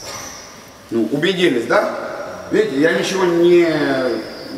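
A man speaks loudly to a group in a large echoing hall.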